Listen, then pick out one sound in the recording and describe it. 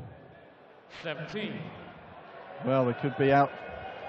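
A man announces loudly through a microphone in a large echoing hall.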